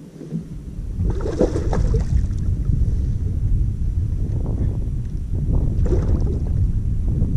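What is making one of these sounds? A fish splashes at the water's surface.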